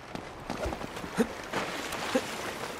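Water splashes as a man wades into a pool.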